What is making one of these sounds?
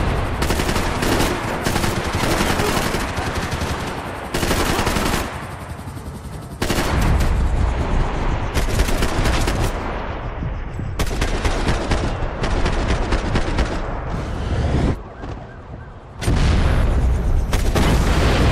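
Rapid gunshots crack and rattle in quick bursts.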